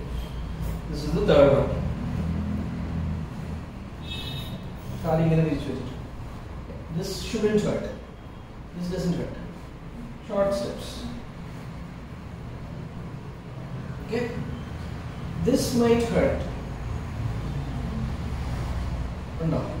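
A man speaks in short, calm phrases nearby.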